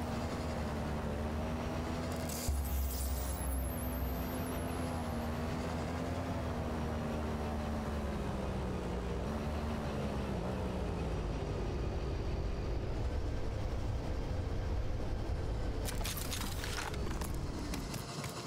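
A hovering vehicle's engine hums steadily, its pitch wavering and then dropping.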